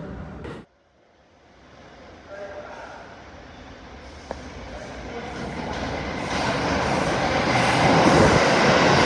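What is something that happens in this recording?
A subway train approaches with a growing rumble and roars past loudly.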